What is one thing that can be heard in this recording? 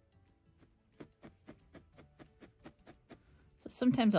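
A felting needle stabs rapidly into a foam pad with soft, regular taps.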